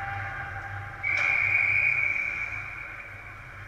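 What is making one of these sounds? A referee's whistle blows one long, shrill blast in a large echoing rink.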